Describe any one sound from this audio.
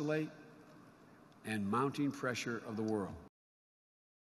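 An older man speaks firmly into a microphone over loudspeakers.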